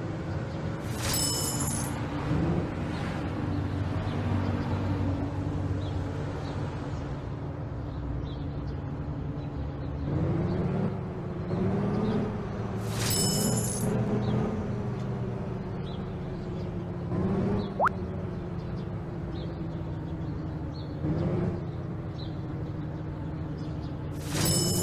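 A chime rings out.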